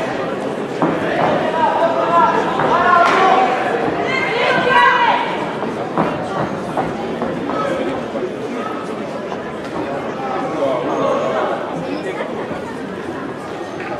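A crowd in a large echoing hall cheers and shouts throughout.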